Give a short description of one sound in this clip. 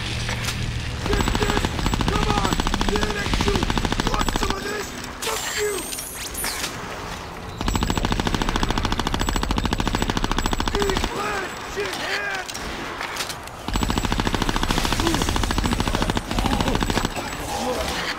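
Guns fire in rapid, loud bursts.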